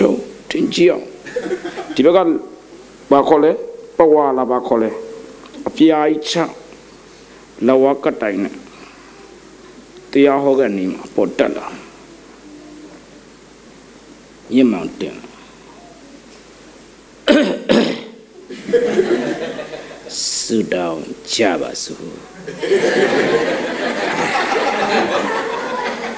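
A man speaks with animation through a microphone and loudspeakers, with echo in a large hall.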